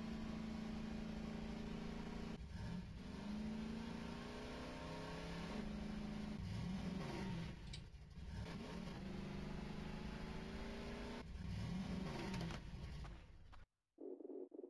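A small engine hums and revs up and down.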